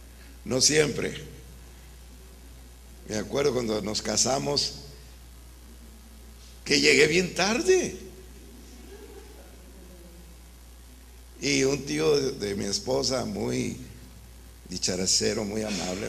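A middle-aged man speaks with animation into a microphone, in bursts with pauses.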